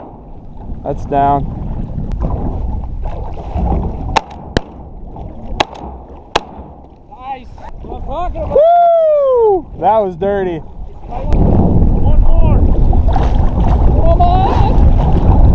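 Small waves lap and splash.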